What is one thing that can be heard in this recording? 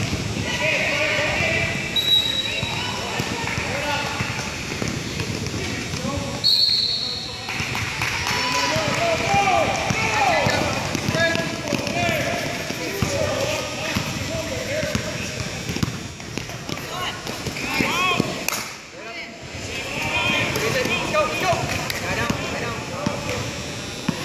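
A crowd of spectators and players chatter and shout in a large echoing hall.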